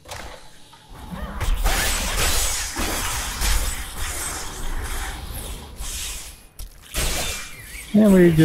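Weapons clash and strike over and over.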